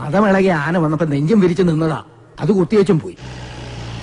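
A man speaks loudly and emphatically.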